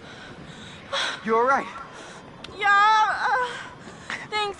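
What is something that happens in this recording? A young woman cries out in alarm, close by.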